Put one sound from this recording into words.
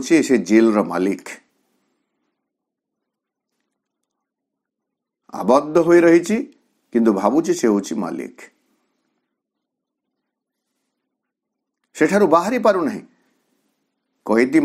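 A man speaks calmly, in short phrases with long pauses.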